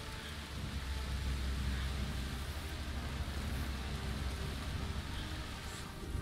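Wind blows steadily through tall grass with a low rumble.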